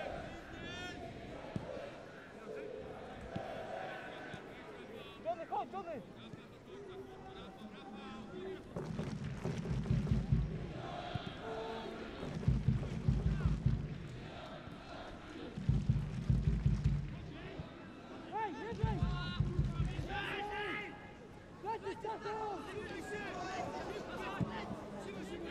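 A large stadium crowd chants and cheers throughout.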